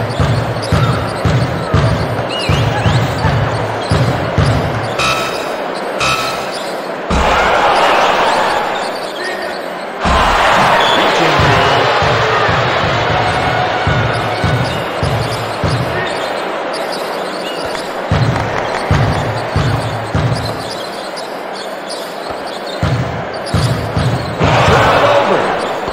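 A basketball is dribbled on a hardwood court.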